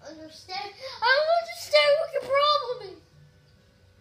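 A young boy shouts excitedly and laughs close by.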